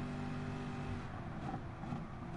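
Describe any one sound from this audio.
A racing car engine crackles as it downshifts under braking.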